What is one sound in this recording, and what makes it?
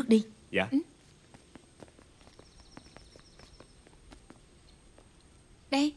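Footsteps tap lightly on a hard floor.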